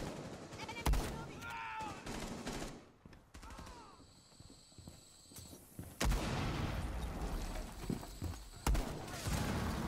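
Gunshots ring out loudly in short bursts.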